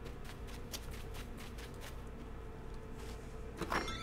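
Light footsteps patter on grass.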